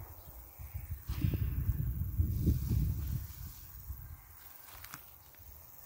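Armfuls of grass rustle as they are dropped into a wheelbarrow.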